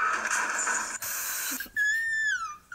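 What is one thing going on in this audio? Static hisses loudly.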